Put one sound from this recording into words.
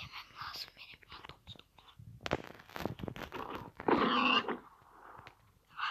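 A pig squeals as it is struck.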